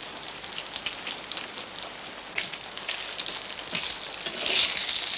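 A wood fire crackles.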